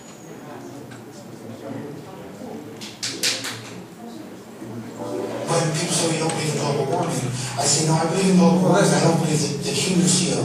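A man speaks through loudspeakers in an echoing hall.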